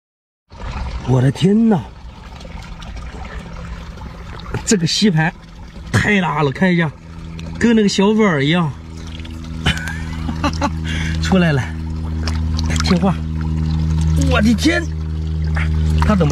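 Water squelches and splashes as a hand pulls an octopus from a rock crevice.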